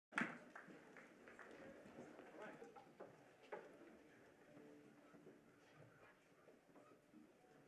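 A large orchestra plays in an echoing hall.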